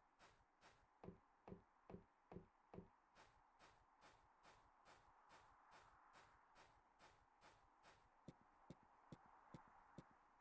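Footsteps tread at a steady walking pace.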